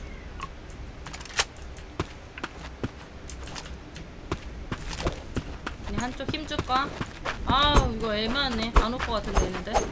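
Footsteps tap on hard ground at a steady walking pace.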